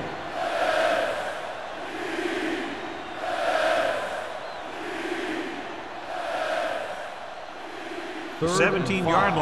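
A large crowd cheers in swelling waves.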